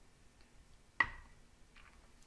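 A woman sets a glass down with a sharp knock.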